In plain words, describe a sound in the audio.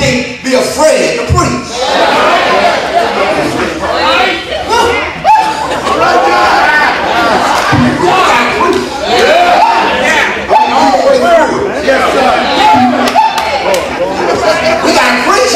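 A crowd of men and women sing together loudly in a large echoing hall.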